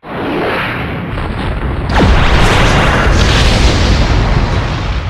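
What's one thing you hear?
A video game fight roars with explosive energy blasts.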